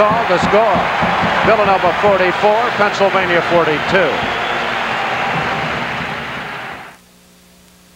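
A large crowd cheers and screams loudly in a big echoing arena.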